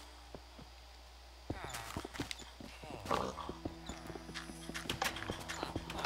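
Footsteps tap on wooden planks.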